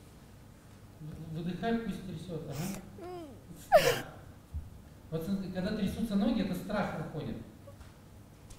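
A young woman speaks tearfully into a microphone, her voice breaking with sobs.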